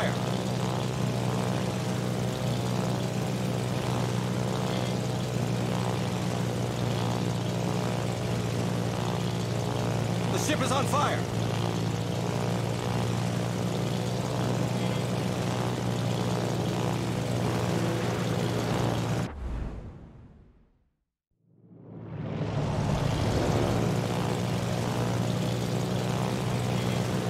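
Piston-engine propeller planes drone as they fly in formation.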